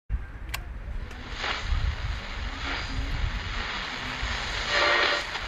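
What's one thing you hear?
A portable radio hisses and crackles with static.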